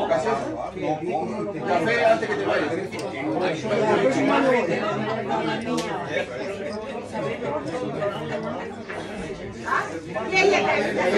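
Several people chat in the background.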